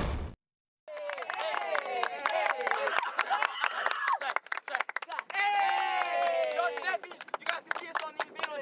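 Hands clap in a quick rhythm.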